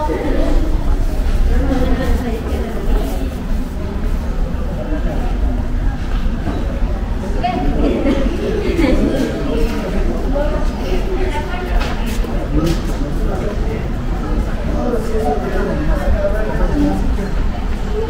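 Footsteps scuff on stone paving nearby.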